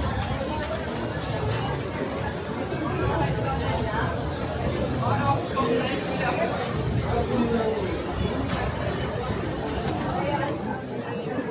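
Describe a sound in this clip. A crowd of people chatters on a busy street.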